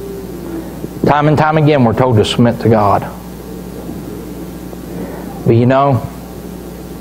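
A middle-aged man speaks calmly through a microphone in an echoing room, with long pauses.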